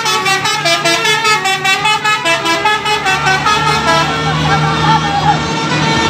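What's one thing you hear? A tour bus engine rumbles as the bus passes close by.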